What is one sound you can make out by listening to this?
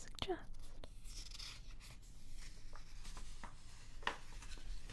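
A magazine page rustles as it is turned.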